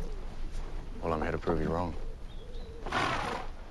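A young man answers calmly.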